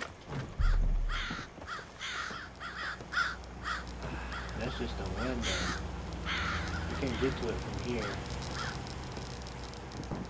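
Footsteps thud on a metal roof.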